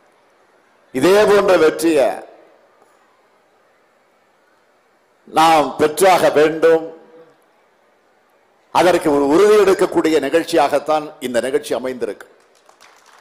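A man speaks forcefully into a microphone through loudspeakers, in bursts with pauses.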